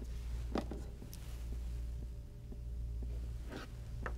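A syringe plunger squeaks softly as it is pushed.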